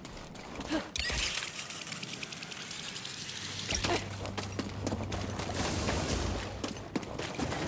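A pulley whirs along a cable.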